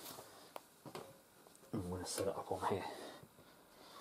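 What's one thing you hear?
A cloth rustles as it is laid over a plastic step.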